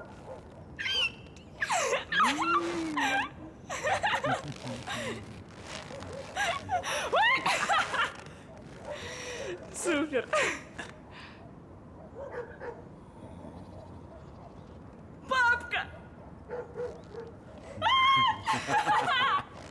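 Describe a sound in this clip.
A young woman shrieks and laughs excitedly close by.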